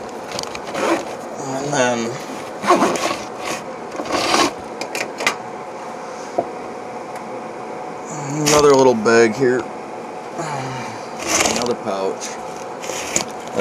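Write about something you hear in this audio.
Cloth rustles and brushes across a hard surface.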